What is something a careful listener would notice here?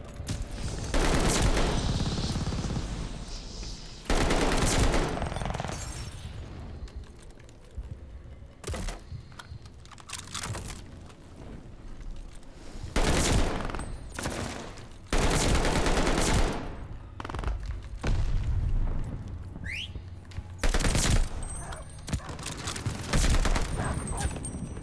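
Gunshots fire in loud rapid bursts.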